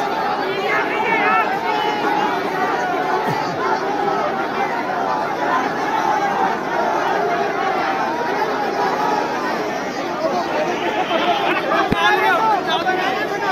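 A large crowd of men and women shouts and cheers noisily outdoors.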